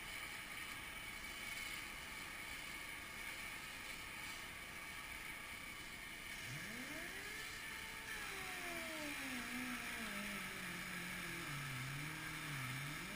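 A cutting torch hisses and roars steadily as it cuts through steel.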